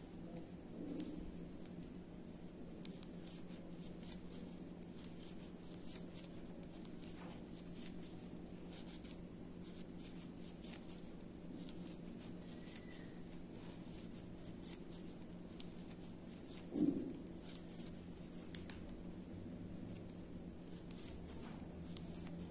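A crochet hook clicks softly against yarn.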